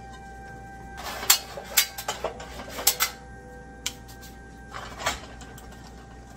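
Mushrooms rustle and clatter on a metal baking tray.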